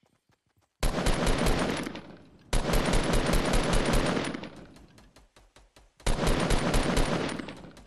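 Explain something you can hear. Rapid automatic gunfire rattles in bursts.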